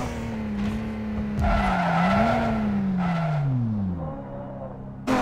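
A racing car engine winds down as the car slows to a stop.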